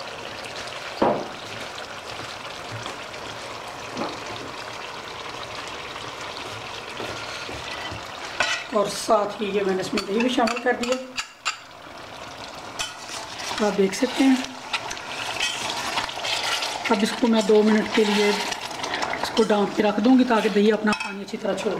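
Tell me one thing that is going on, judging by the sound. A metal spatula scrapes and knocks against a metal pot.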